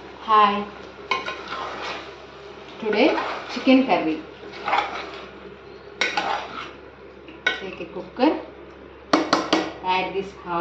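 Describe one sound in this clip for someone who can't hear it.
A metal spoon scrapes and clinks against the inside of a pot.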